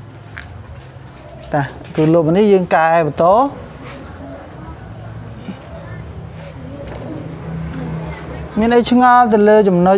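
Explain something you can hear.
A cloth rubs across a whiteboard.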